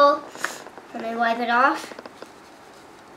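A young girl talks softly nearby.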